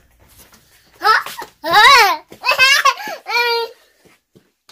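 A young child squeals and shrieks playfully close by.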